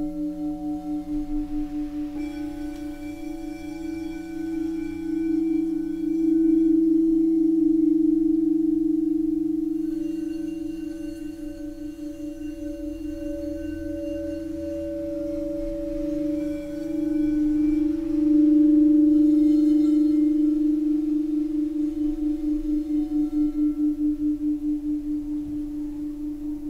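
Crystal singing bowls hum and ring in long, wavering, overlapping tones.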